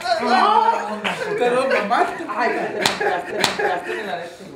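Hands slap and thump on a person.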